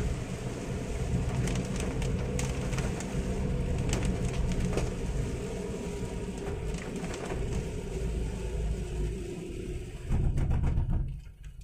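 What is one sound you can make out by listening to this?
A car engine hums low and steady.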